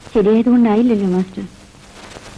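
A woman speaks in a pained, drawn-out voice.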